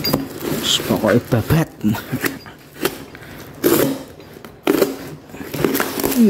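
Paper packaging rustles and tears.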